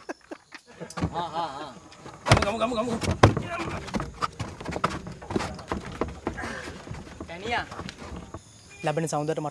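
Footsteps thump and clatter on a wooden platform.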